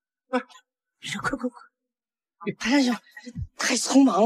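A middle-aged man speaks with animation.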